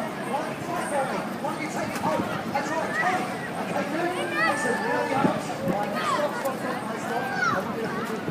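A crowd of people chatters outdoors in an open square.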